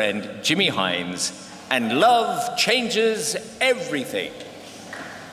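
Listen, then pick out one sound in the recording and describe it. An elderly man speaks through a microphone in a large echoing hall.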